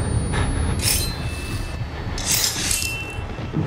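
A creature snarls and growls close by.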